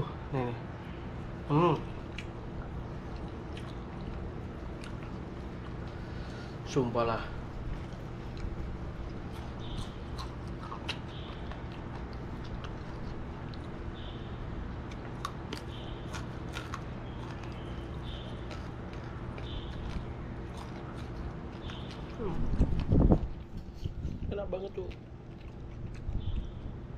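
A man chews and smacks his lips noisily.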